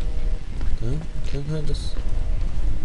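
A young man speaks briefly and with animation, close to a microphone.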